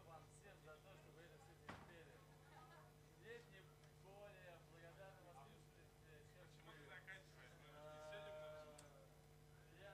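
A man speaks casually into a microphone in a room with an echo.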